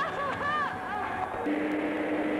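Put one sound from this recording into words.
A woman screams in terror.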